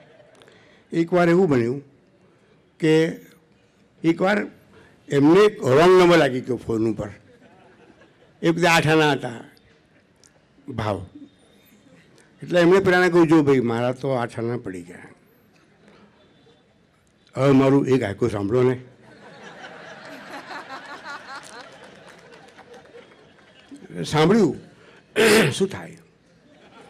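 An elderly man speaks slowly into a microphone, in short phrases with pauses.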